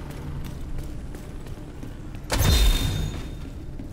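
Footsteps clang up metal stairs.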